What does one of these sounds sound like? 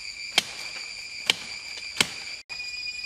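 Sharp knocks of a blade chopping into a branch.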